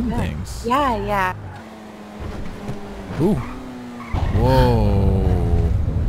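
A car engine hums as the car drives along a road.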